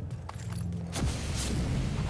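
Gunshots bang out nearby.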